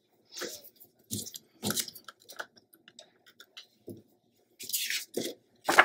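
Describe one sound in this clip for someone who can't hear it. A glue bottle squeezes with soft squelching sounds.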